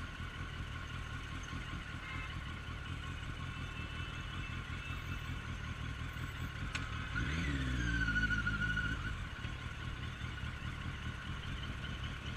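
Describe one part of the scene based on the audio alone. A motorcycle engine idles and rumbles up close.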